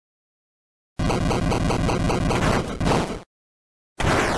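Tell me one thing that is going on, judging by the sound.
A loud electronic whoosh rushes past.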